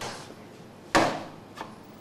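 Doughnuts are set down on a metal tray with soft knocks.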